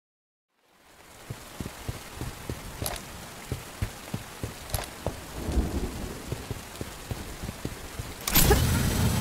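Footsteps crunch over rough ground.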